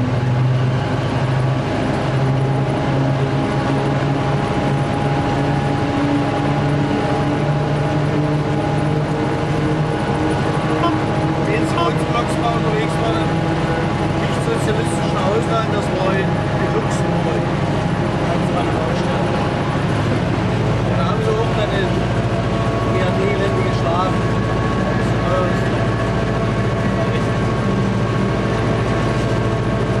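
A train engine hums steadily as the train rolls along.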